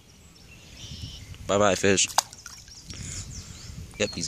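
A small fish splashes into water.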